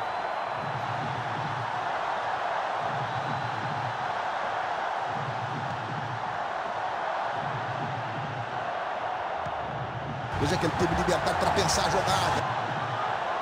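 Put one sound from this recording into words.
A large stadium crowd murmurs steadily.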